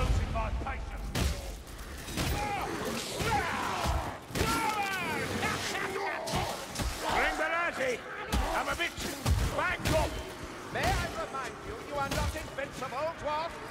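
Creatures shriek as they are hit.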